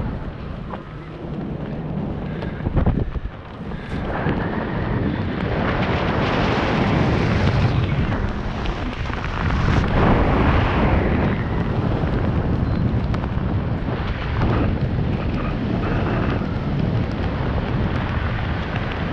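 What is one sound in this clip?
Strong wind rushes and buffets past a microphone high in the open air.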